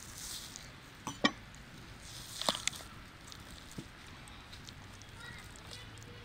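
Hands tear and rustle raw poultry skin.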